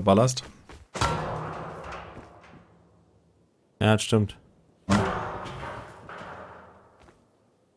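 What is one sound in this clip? A stone tool strikes a metal barrel with a loud clang that rings out and fades.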